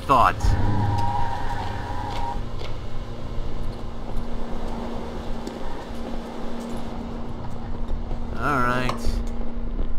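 A car engine hums and revs steadily.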